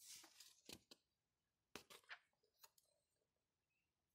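Paper pages rustle as they turn.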